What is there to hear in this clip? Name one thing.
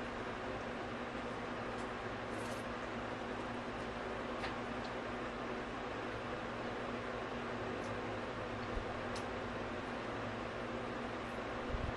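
A young woman chews food noisily.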